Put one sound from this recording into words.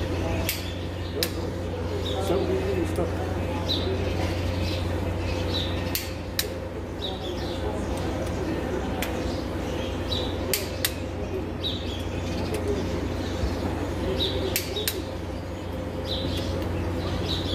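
A ratchet wrench clicks in short bursts as a bolt is turned.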